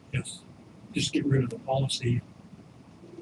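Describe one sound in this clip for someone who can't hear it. A man speaks briefly through a microphone in a quiet room.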